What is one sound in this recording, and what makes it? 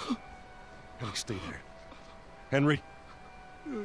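A man speaks urgently.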